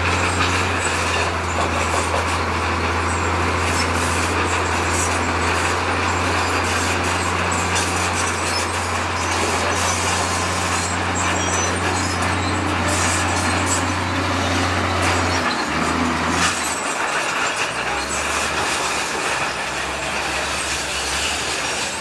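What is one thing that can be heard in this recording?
A bulldozer engine rumbles steadily close by.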